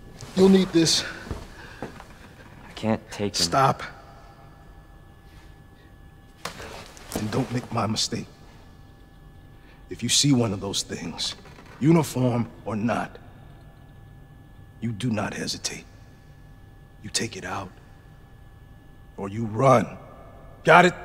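A man speaks firmly and urgently, close by.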